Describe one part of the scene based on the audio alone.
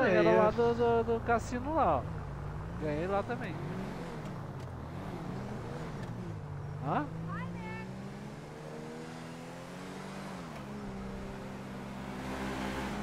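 A car engine hums and revs as the car drives along a road.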